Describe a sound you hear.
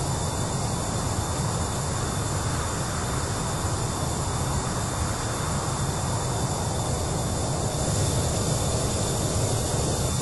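An aircraft engine drones steadily with a low rumble.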